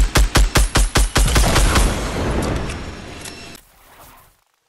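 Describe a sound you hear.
A rapid burst of gunfire rings out and echoes away.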